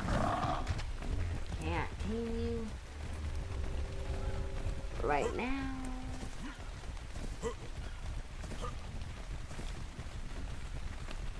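Rain pours steadily.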